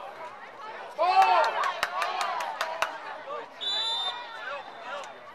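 Young players shout and cheer loudly.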